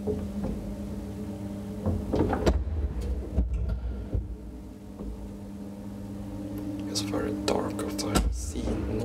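A metal lift gate rattles and clanks.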